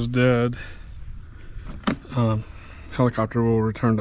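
A hard case clicks open.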